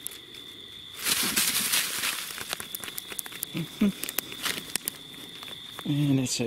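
Dry leaves rustle and crackle loudly close by.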